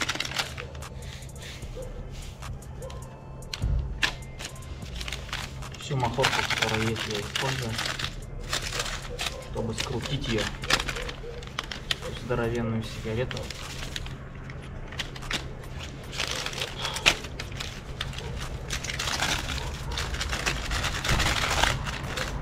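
Newspaper rustles and crinkles as it is handled.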